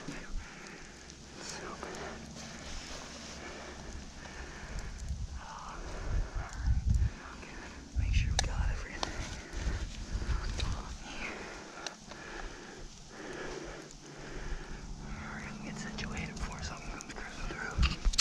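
Wind gusts outdoors, rumbling against the microphone.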